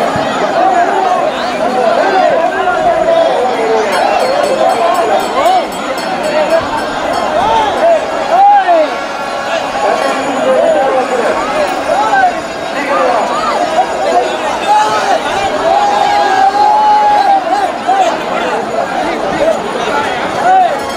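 A large crowd outdoors chatters and shouts with excitement.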